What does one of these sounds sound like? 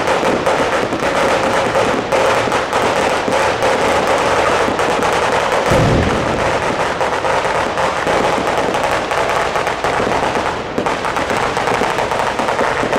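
Fireworks crackle and bang continuously outdoors.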